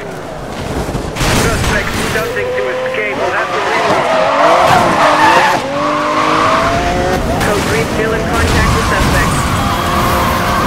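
A car crashes hard into another car with a loud bang.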